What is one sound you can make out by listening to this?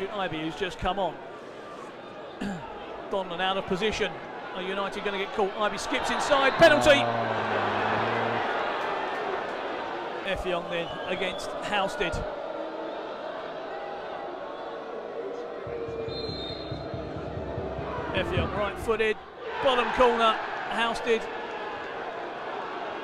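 A crowd in a stadium cheers and roars, swelling and fading.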